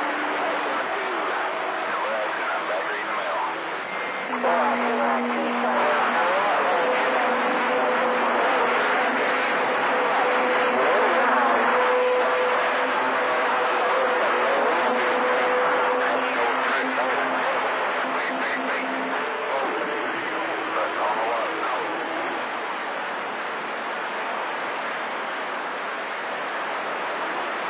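Static hisses and crackles steadily from a radio receiver.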